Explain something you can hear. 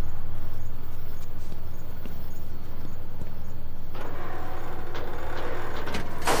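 A low electrical hum drones steadily.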